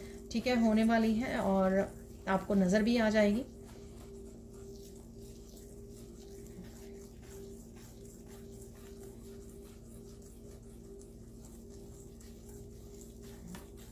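Fingers scrape and swish through fine sand.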